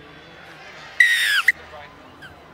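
A referee blows a sharp whistle.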